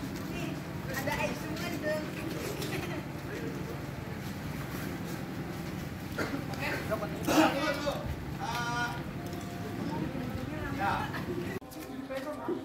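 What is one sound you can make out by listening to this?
A young man talks loudly outdoors.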